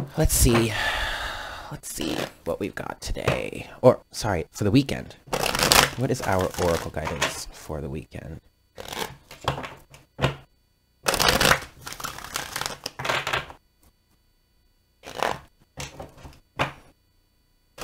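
Cards are shuffled and slapped down on a table.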